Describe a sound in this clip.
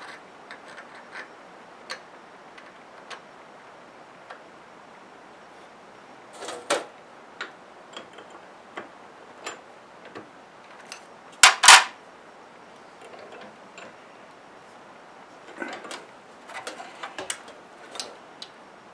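Metal parts click and tap together as a small piece is handled.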